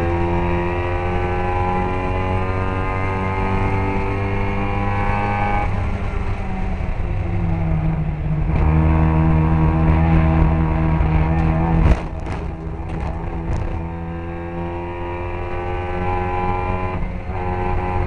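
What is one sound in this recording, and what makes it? A car engine roars loudly close by, rising and falling in pitch as it shifts gears.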